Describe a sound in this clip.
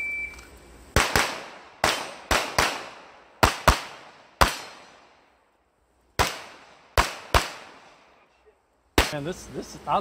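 Pistol shots ring out one after another outdoors, each echoing briefly.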